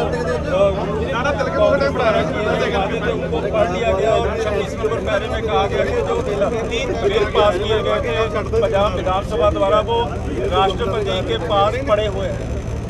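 An elderly man speaks close to a microphone, calmly and firmly.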